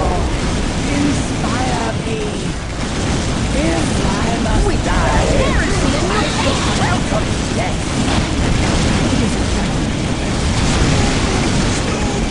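Flamethrowers roar in bursts.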